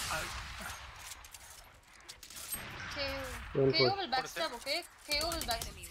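A rifle is reloaded with metallic clicks.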